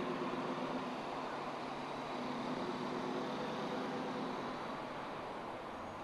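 A car's engine hums as the car rolls slowly up close by.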